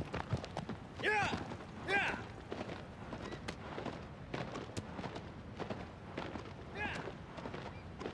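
A horse whinnies in short calls.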